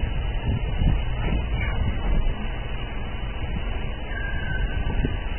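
A car engine hums steadily inside a moving car.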